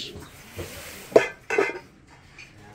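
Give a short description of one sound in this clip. A ceramic lid clinks against a ceramic dish.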